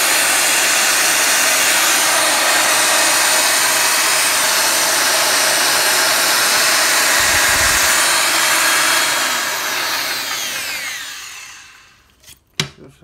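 An angle grinder whirs loudly and then winds down to a stop.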